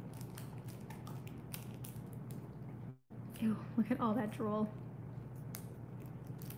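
A dog chews and gnaws on a toy with soft clicks.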